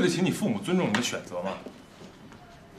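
A young man speaks calmly and seriously nearby.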